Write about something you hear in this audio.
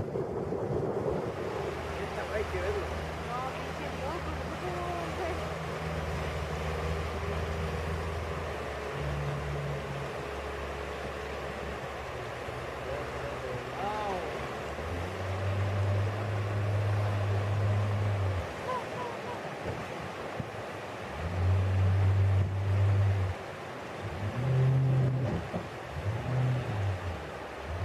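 Water rushes and churns over rapids.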